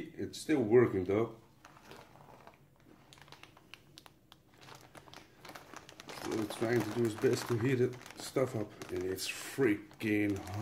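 A plastic pouch crinkles as it is handled.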